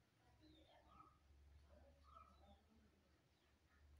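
Fingers tap softly on a phone's touchscreen.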